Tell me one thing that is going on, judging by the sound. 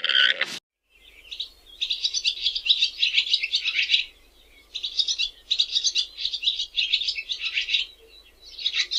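Small birds twitter rapidly in quick bursts.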